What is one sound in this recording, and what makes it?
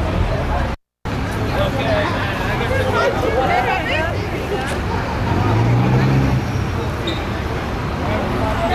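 A crowd of people chatters on a busy street.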